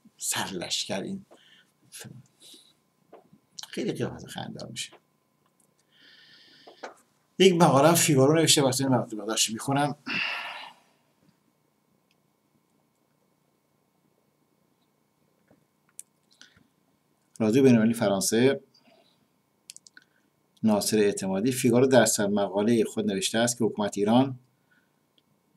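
A middle-aged man speaks with animation close to a microphone, pausing between phrases.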